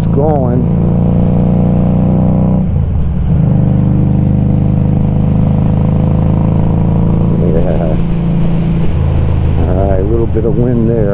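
A motorcycle engine rumbles steadily close by, its pitch shifting as the rider changes gear.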